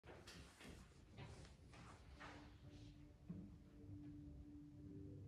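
A piano plays softly alongside.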